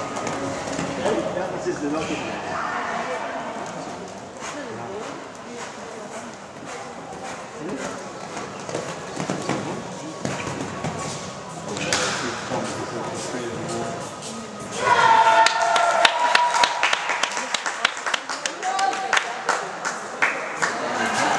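A horse canters with soft hoof thuds on sand in a large echoing hall.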